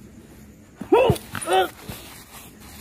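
A man shouts loudly nearby.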